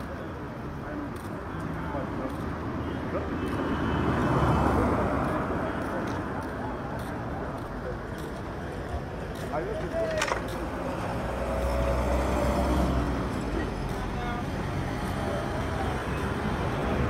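Cars drive past on a road outdoors.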